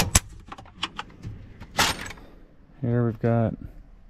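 A metal drawer slides open.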